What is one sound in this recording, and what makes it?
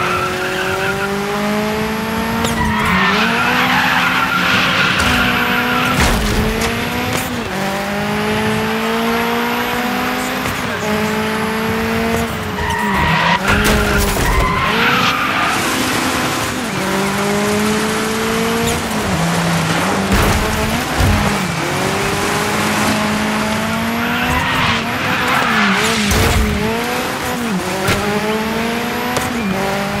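A turbocharged rally car engine revs hard and drops through gear changes.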